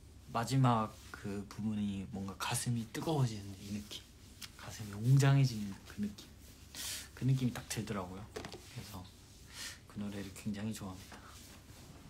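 A young man speaks softly and warmly, close to a microphone.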